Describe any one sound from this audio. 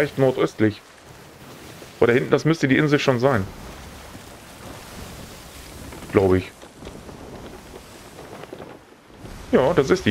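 Sea waves wash against a wooden ship's hull.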